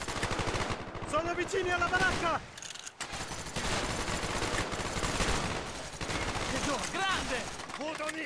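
Gunfire crackles in rapid bursts nearby.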